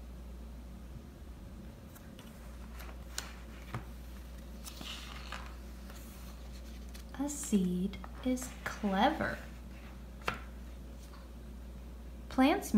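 A paper page turns.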